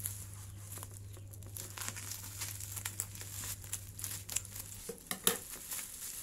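Scissors snip through crinkly bubble wrap.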